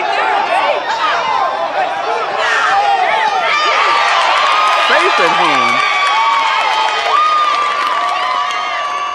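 Young men shout and cheer loudly nearby.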